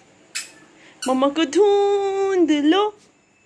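A young child squeals in a high, sustained voice close by.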